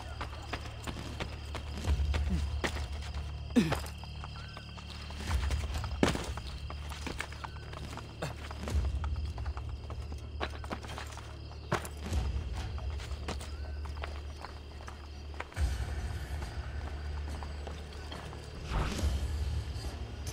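Footsteps patter on a tiled roof.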